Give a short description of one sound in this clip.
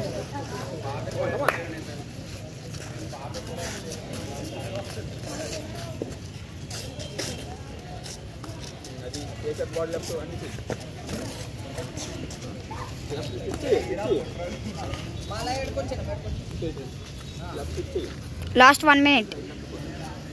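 A man calls out instructions to children nearby.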